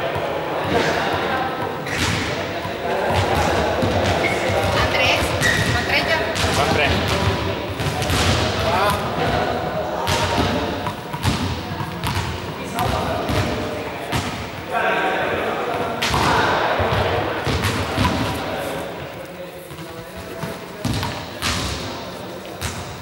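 Juggling balls slap softly into hands in a large echoing hall.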